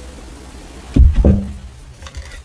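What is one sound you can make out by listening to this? A wooden box is set down with a thud.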